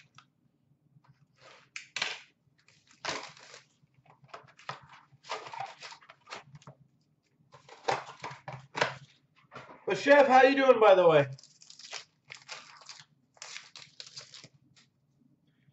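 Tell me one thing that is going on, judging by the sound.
Plastic wrappers crinkle and rustle close by.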